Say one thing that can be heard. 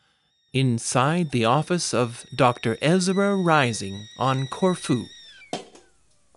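A kettle whistles steadily.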